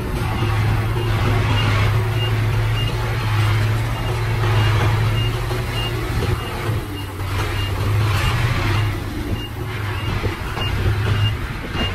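Dirt and rocks slide and tumble out of a tipped truck bed.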